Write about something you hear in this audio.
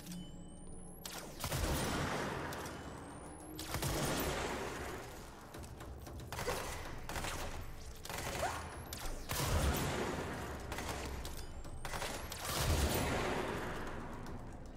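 A gun fires loud bursts with echoing blasts.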